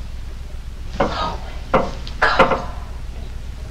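A woman gasps and murmurs softly.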